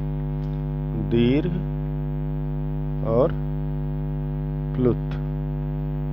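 A man speaks in short, calm words close to a microphone.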